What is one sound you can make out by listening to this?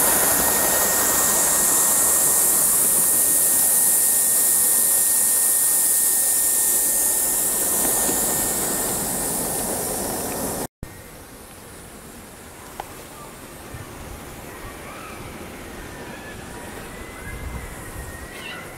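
A model train's wheels click over rails.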